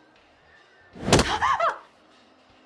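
A young woman gasps and cries out in fright.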